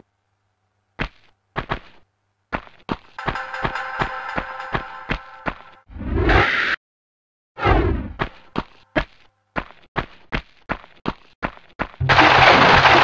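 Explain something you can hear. Footsteps slap quickly on a stone floor.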